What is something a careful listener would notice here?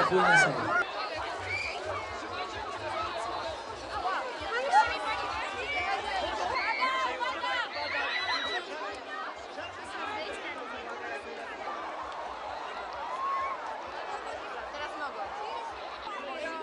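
A crowd of people chatters and calls out outdoors.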